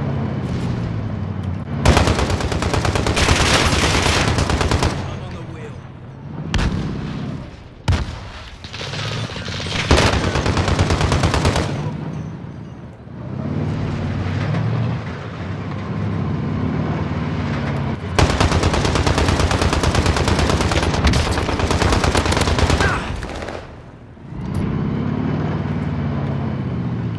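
A truck engine rumbles and revs.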